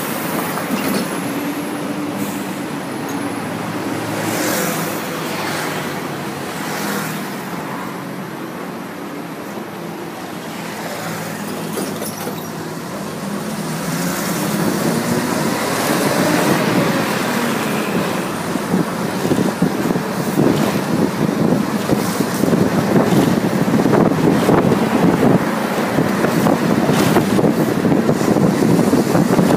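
Traffic rumbles steadily along a busy road.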